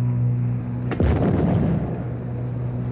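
Explosions boom and throw up splashing water.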